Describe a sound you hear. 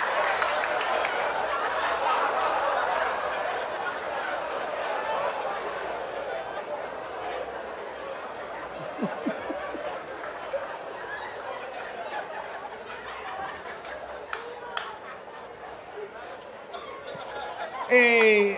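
A crowd laughs and cheers loudly in a large hall.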